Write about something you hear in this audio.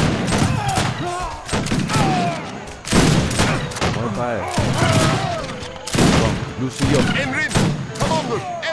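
Muskets fire in sharp bursts during a battle.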